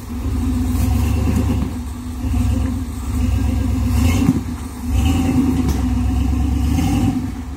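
An off-road truck engine rumbles and revs as the truck crawls over rocks.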